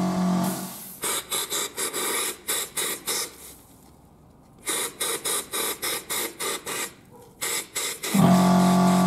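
An electric drill motor revs in short, quick bursts.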